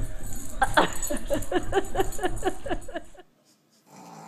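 A small dog yips and barks excitedly close by.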